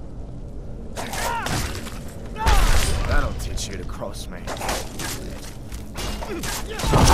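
Swords clash and strike a shield.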